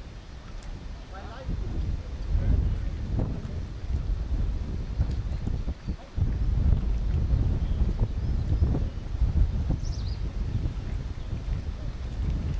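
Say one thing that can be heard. Oars dip and splash in the water.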